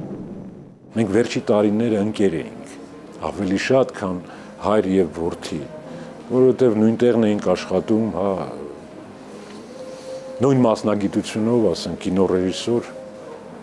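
A middle-aged man speaks calmly and close by.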